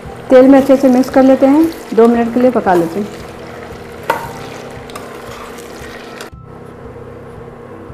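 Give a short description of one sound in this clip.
A metal spoon scrapes and stirs inside a pot.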